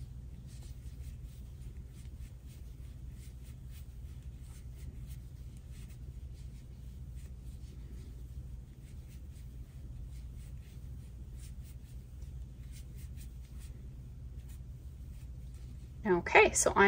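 A crochet hook softly clicks and rasps against yarn.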